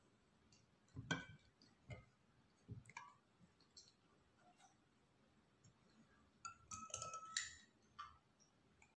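Plastic bottles tap and clink.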